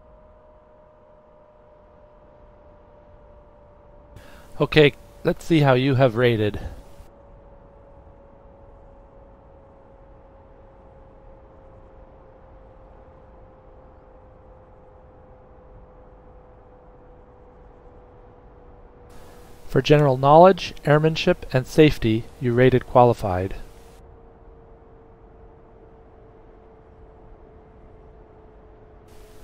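A jet engine whines steadily at idle, its pitch sinking slowly.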